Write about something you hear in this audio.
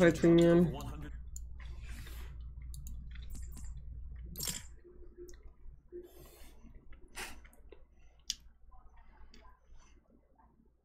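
A young woman speaks quietly and casually into a nearby microphone.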